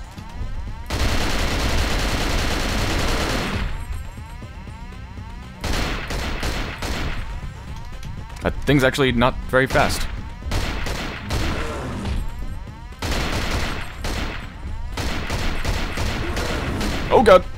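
A rifle fires in rapid bursts, echoing in a large hall.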